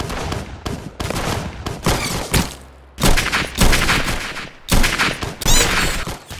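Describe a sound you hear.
A launcher fires with sharp booming blasts.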